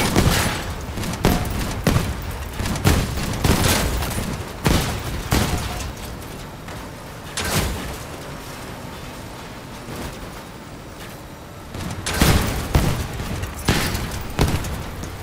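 Heavy cannons on an armoured vehicle fire shot after shot.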